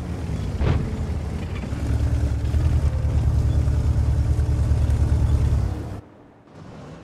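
A tank engine rumbles loudly, then cuts off.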